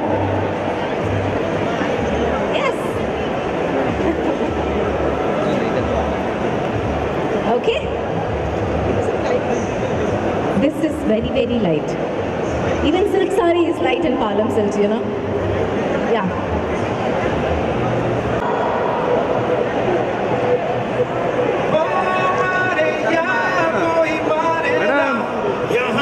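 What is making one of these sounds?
A young woman speaks into a microphone, heard through loudspeakers.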